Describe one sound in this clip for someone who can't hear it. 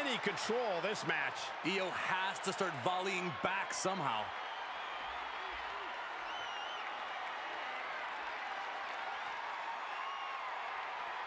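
A large crowd cheers and murmurs steadily in a big arena.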